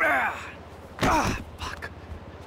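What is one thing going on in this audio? A body thuds hard onto the floor.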